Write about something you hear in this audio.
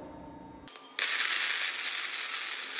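An arc welder crackles and hisses steadily.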